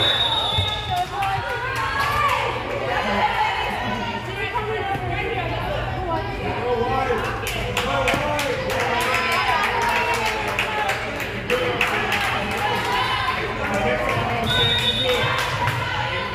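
Young women call out and chatter in a large echoing gym.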